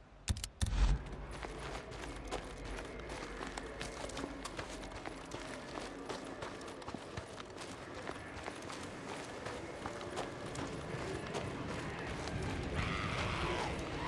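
Footsteps crunch on gravel and grass.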